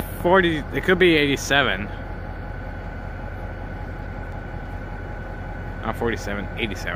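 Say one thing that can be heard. A diesel locomotive rumbles low and steadily in the distance.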